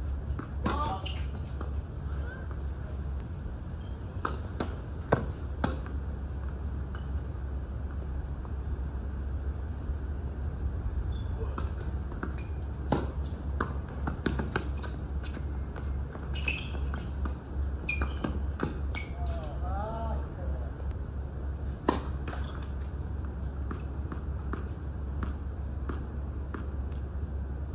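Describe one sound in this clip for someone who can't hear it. Footsteps squeak and scuff on a hard court.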